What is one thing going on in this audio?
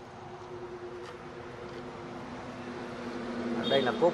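A car's boot lid clicks open.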